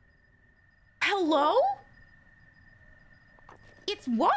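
A young woman exclaims loudly into a close microphone.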